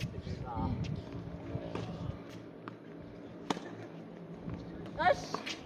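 Sneakers scuff and patter on a hard court.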